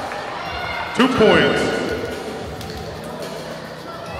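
A crowd of spectators cheers briefly.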